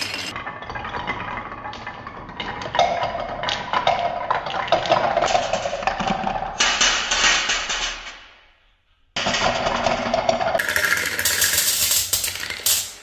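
Marbles roll and clatter down wooden ramps.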